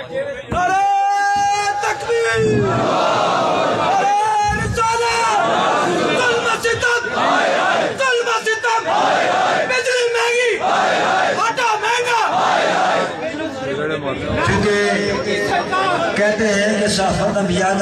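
A man shouts slogans loudly into a microphone outdoors.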